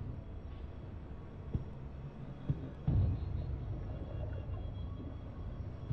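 Footsteps clang on metal stairs.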